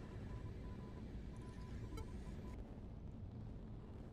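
An electronic chime sounds briefly.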